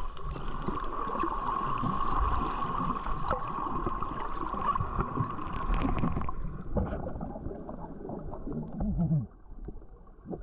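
Water rushes and burbles with a muffled underwater sound.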